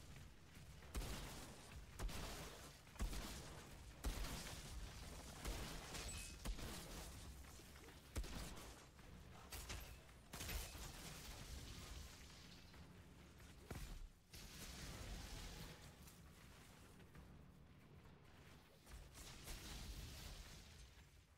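Heavy gunfire blasts in loud bursts.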